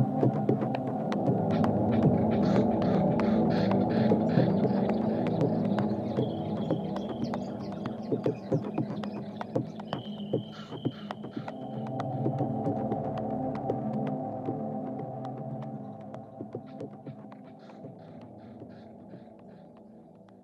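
Electronic dance music plays with a steady beat and fades out toward the end.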